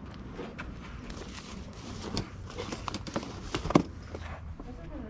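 Plastic items rattle and clatter as a hand rummages through a bin.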